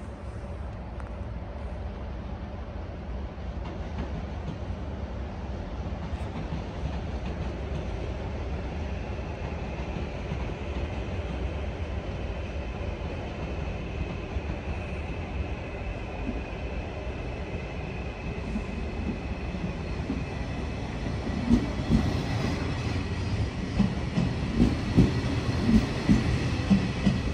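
A train approaches with a low rumble and rolls slowly past close by.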